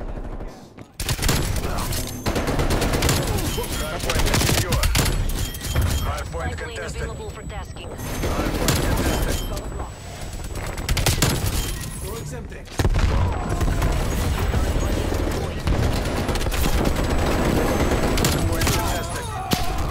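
Rapid gunfire rattles in bursts.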